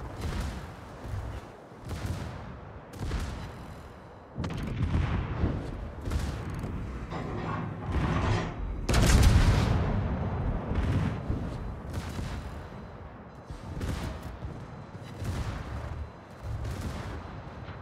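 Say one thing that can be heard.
Heavy naval guns fire in loud booming blasts, again and again.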